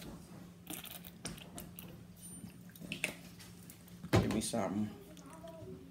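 A squeeze bottle of sauce squirts.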